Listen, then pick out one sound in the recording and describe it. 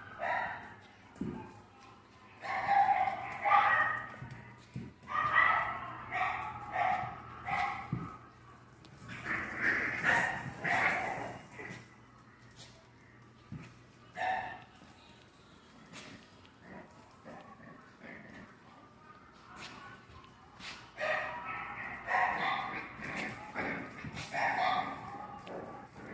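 Puppies growl and yap playfully.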